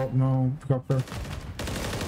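A man speaks loudly into a close microphone.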